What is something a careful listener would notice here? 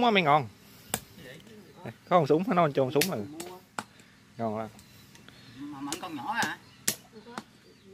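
A knife knocks sharply against fish on a hard surface.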